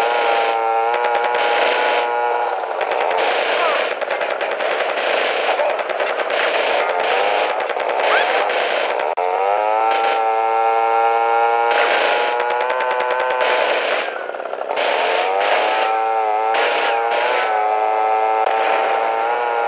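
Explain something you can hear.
A motorbike engine drones steadily, rising and falling in pitch.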